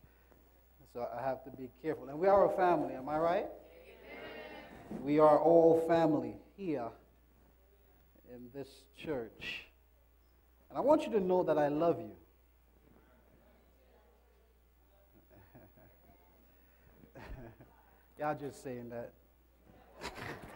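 A man speaks through a microphone in a hall, in short animated bursts with pauses.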